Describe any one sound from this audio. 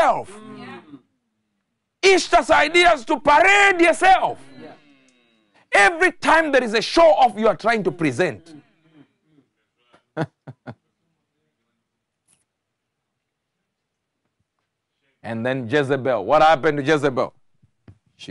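A man preaches with animation through a microphone, pausing between phrases.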